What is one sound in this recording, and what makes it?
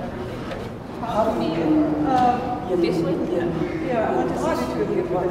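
An older man talks calmly close by.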